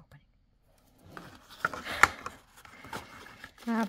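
Cardboard packaging rustles and scrapes.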